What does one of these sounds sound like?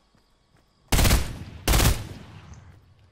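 A gun fires two loud shots.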